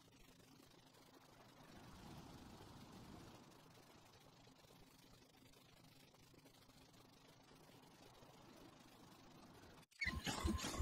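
Footsteps patter quickly across grass.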